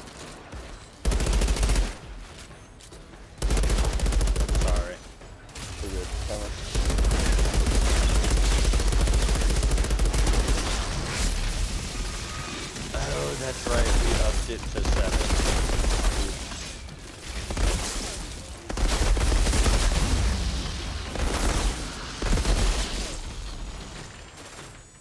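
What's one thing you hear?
Rapid gunfire bursts in loud, repeated volleys.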